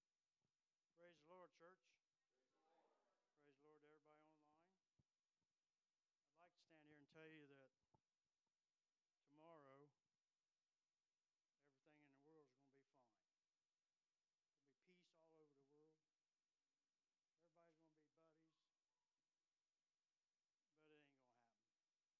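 An elderly man preaches slowly through a microphone, in short phrases with pauses.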